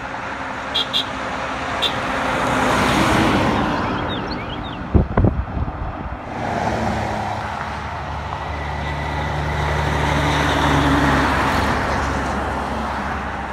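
Heavy trucks roar past close by, one after another.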